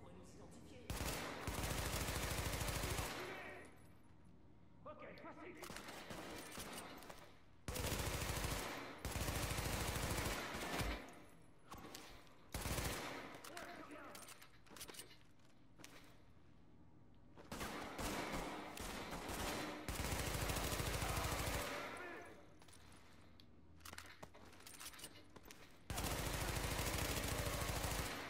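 Rapid gunfire bursts echo through a large hall.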